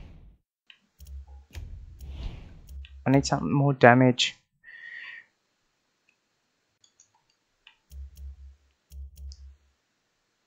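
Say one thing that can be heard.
Soft menu clicks and thuds sound as options are selected.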